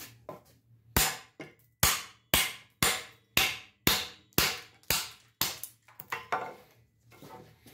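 A hatchet chops into wood with sharp, rapid blows.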